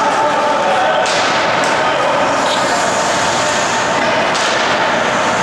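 Hockey sticks click against a puck.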